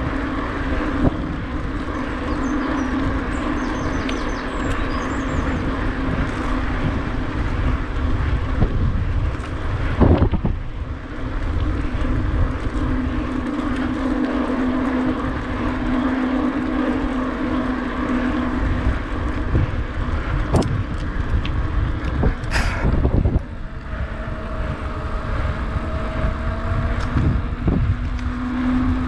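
Bicycle tyres roll steadily over a paved path.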